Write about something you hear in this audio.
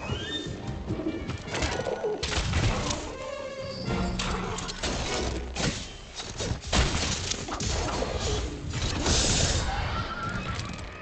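Weapon blows strike with sharp impacts.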